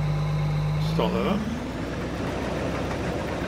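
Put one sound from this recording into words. A combine harvester's engine revs up and rises in pitch.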